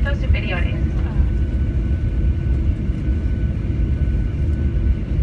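Jet engines whine with a steady tone.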